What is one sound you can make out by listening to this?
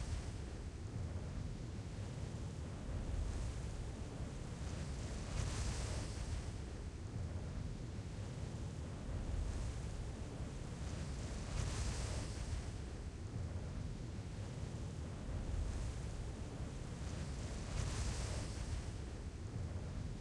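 Wind rushes steadily past a descending parachute.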